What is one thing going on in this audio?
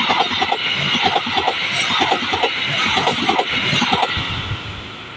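A passenger train rushes past close by, its wheels clattering rhythmically over the rail joints.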